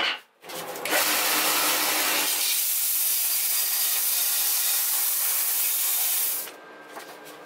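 A band saw whines loudly as it cuts through steel.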